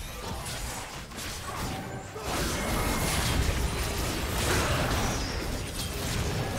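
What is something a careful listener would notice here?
Spell blasts and weapon hits crash in a video game battle.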